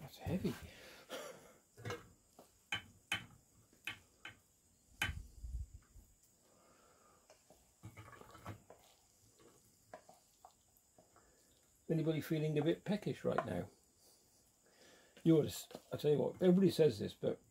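A metal spatula scrapes and clinks against an enamel pan.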